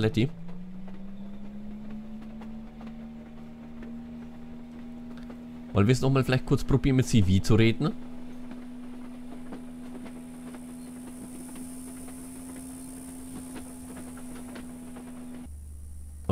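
A motor hums steadily.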